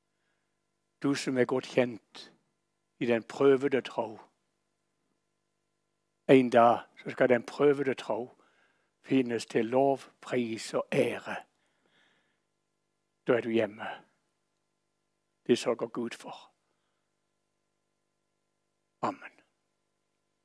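An elderly man reads aloud calmly and with emphasis, close by.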